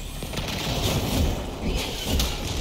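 An energy blade whooshes and crackles as it swings.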